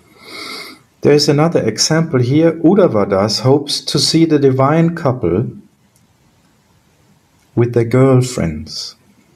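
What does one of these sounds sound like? A middle-aged man speaks calmly through an online call.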